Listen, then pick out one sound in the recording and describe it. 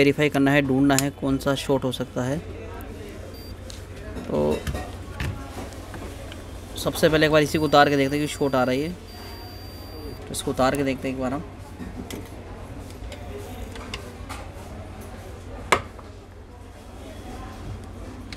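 Metal probes tap and click against a circuit board.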